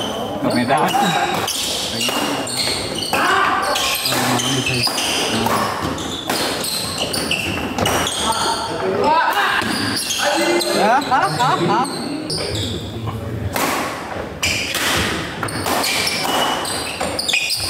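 A crowd of onlookers chatters and calls out in a large echoing hall.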